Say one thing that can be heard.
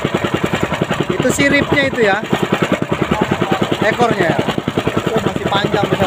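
A man talks casually nearby, heard over the engine.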